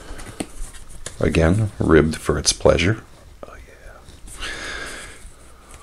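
A stiff paper card rustles as hands handle it.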